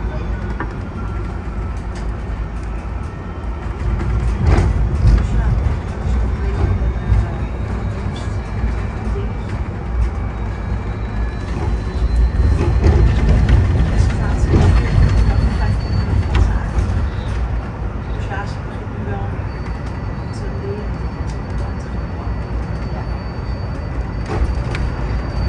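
Tyres roar on the road as a bus drives along.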